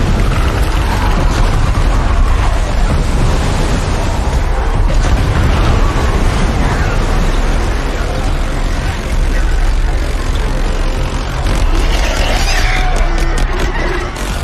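Water crashes and roars against a huge barrier.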